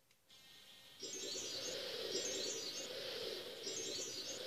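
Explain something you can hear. Lively game music plays from a television speaker.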